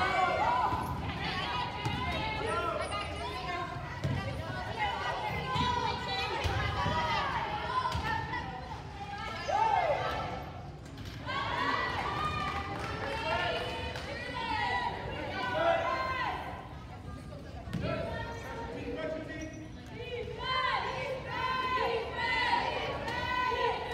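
Spectators chatter nearby.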